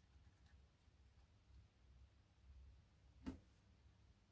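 A small part clicks as it is lifted out of a socket.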